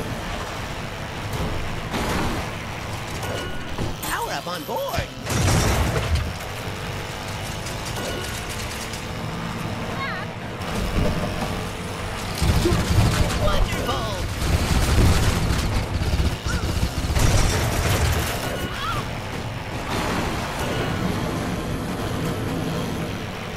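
A kart engine hums and whines steadily as it races.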